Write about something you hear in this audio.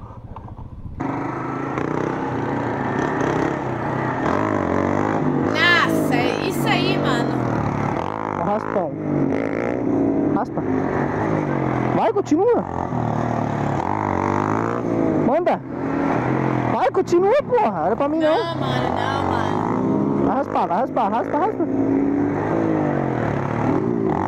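A motorcycle engine revs loudly and roars as it speeds up.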